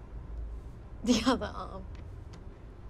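A young man bursts out laughing.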